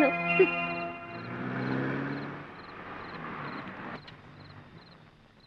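A car engine hums as a car pulls in and stops.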